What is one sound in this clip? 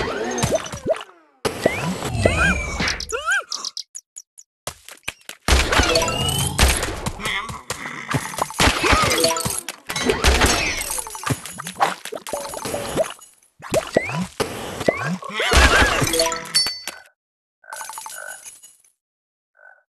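Cartoonish game sound effects zap, pop and chirp in quick bursts.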